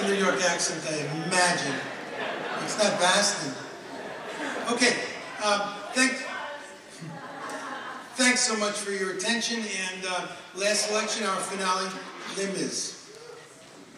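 An elderly man speaks with animation into a microphone in a large hall.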